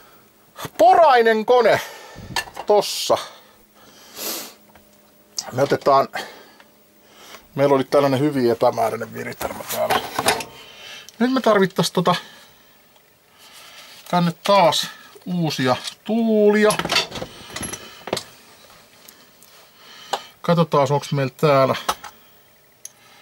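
A man talks close to the microphone, casually and in bursts.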